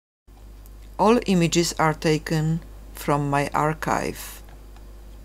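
A middle-aged woman speaks calmly nearby.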